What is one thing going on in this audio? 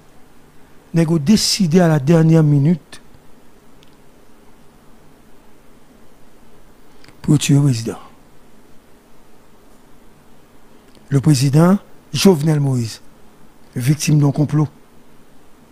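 A man speaks into a microphone in short, forceful bursts with long pauses between.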